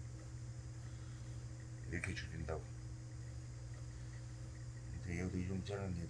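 Chalk scrapes across cloth.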